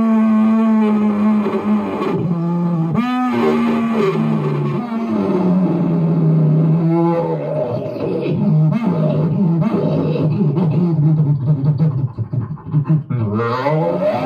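A young man beatboxes into a microphone, with deep buzzing bass and sharp percussive clicks.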